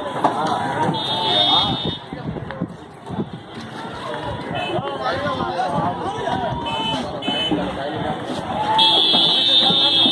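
Car horns honk nearby.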